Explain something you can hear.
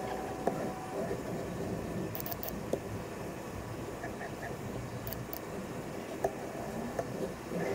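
A robot arm whirs steadily as it moves.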